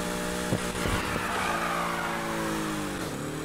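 Tyres screech as a car drifts through a bend.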